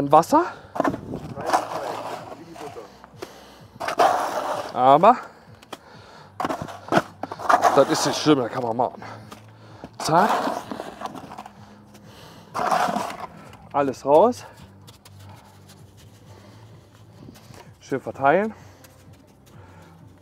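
A trowel scrapes and scoops mortar from a bucket.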